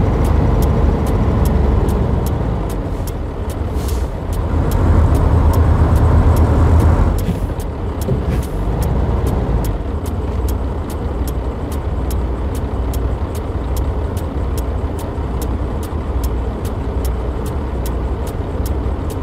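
A truck engine rumbles steadily, growing louder and then easing off as the truck slows.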